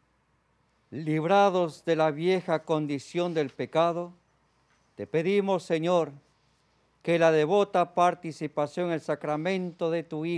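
A man chants in a steady sung voice through a microphone.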